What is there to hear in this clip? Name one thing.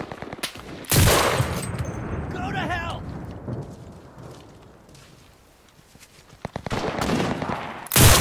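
A rifle fires a loud, sharp shot.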